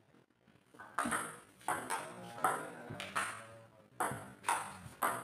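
A ball clicks back and forth off paddles and a table.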